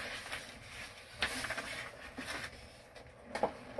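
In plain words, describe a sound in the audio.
Paper pages of sheet music rustle as they are turned.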